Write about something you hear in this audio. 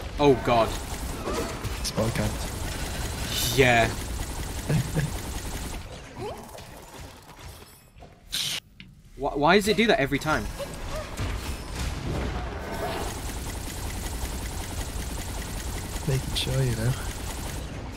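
Rapid magical shots fire and burst with crackling impacts.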